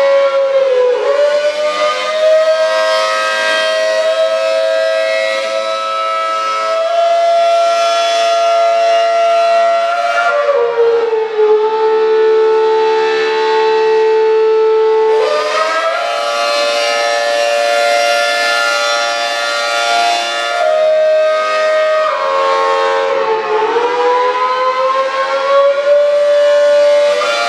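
A siren wails loudly and steadily, its pitch dipping and rising as it turns.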